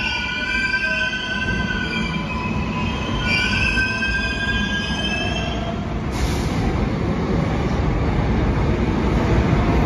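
A subway train rolls past with its wheels clattering.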